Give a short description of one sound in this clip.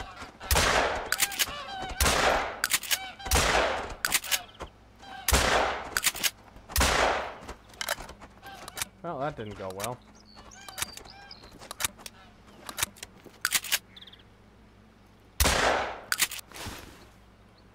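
A shotgun's pump action clacks between shots.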